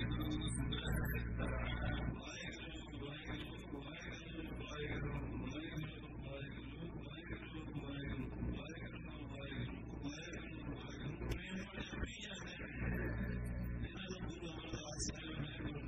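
An elderly man speaks steadily through a microphone.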